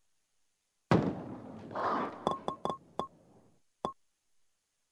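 A bowling ball crashes into pins, and the pins clatter and knock together.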